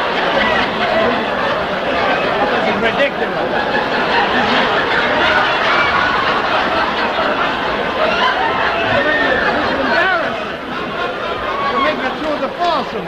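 Several men shout and talk excitedly over one another.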